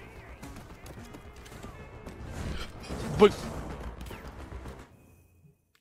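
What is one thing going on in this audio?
Gunfire and game sounds play through a stream.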